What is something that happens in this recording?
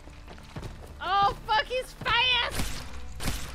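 A young woman talks animatedly into a close microphone.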